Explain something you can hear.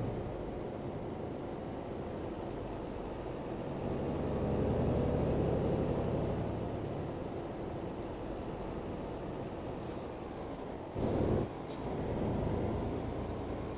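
Tyres roll on a road.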